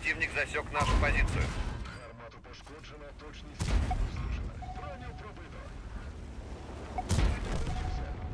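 A tank cannon fires with heavy booms.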